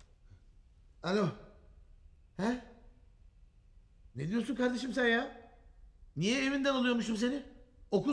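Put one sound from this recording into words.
A young man speaks sleepily and groggily into a phone.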